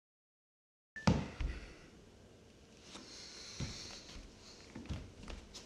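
Hands and feet thump softly on a wooden floor.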